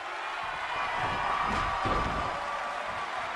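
Heavy thuds sound as bodies slam onto a wrestling mat.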